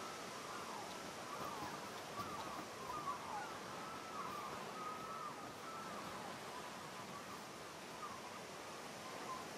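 Water sloshes gently around people wading.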